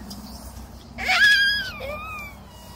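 A baby squeals loudly.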